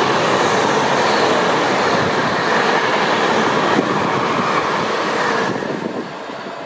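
A high-speed train rushes past close by with a loud roar of wind.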